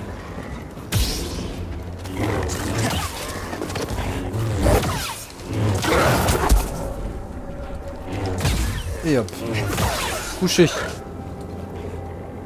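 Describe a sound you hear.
A lightsaber hums and clashes with sharp crackling hits.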